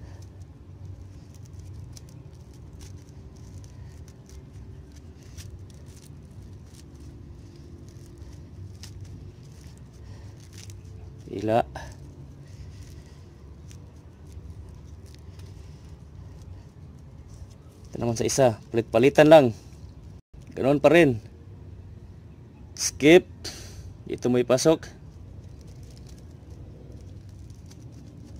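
Hands tuck and pull the strands of a three-strand rope, which rustle softly.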